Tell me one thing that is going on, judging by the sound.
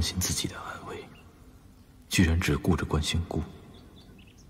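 A young man speaks quietly and coldly, close by.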